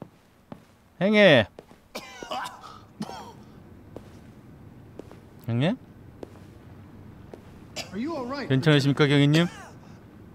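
A man groans and retches loudly, close by.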